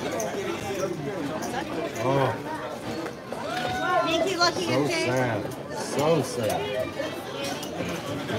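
Casino chips click against each other on a table.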